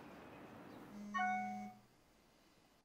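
A smartphone chimes with an alert.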